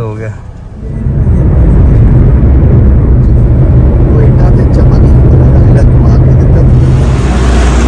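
Tyres roar steadily on the road inside a moving car.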